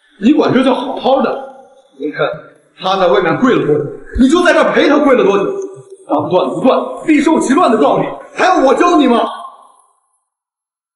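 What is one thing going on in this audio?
A young man scolds loudly and angrily, close by.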